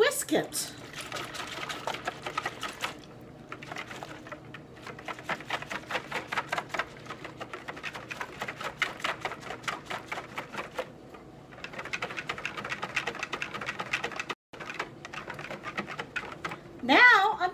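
A whisk beats rapidly against the sides of a bowl.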